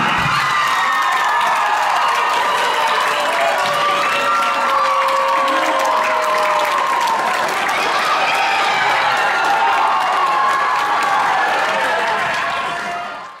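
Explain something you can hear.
Young men clap their hands.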